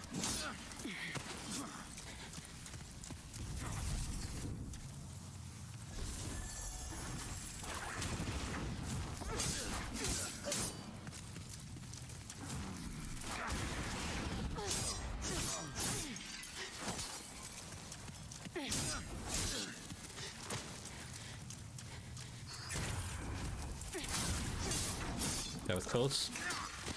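Swords clash and strike in quick bursts.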